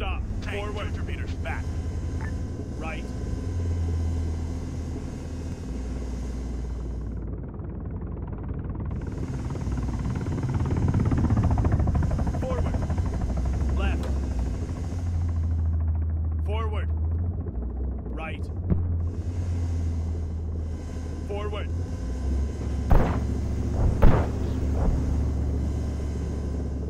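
A helicopter engine drones steadily.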